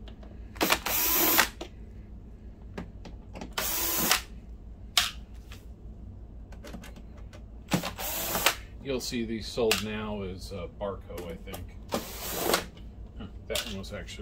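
Metal tools click and clatter.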